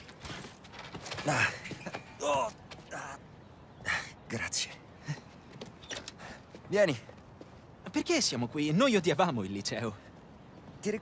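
A second young man answers with animation nearby.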